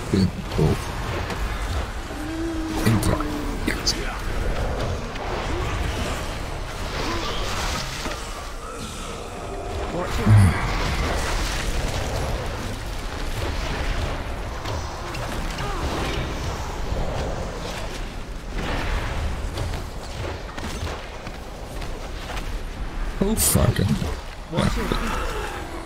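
A middle-aged man talks with animation close to a microphone.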